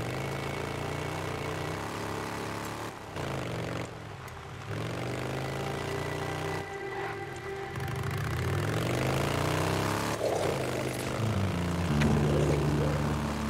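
A motorcycle engine rumbles and revs up and down.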